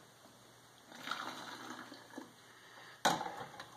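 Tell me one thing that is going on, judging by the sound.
Liquid pours into a funnel.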